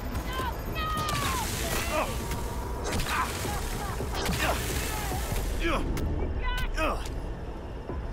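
A rifle fires loud shots, each with a falling electric whine.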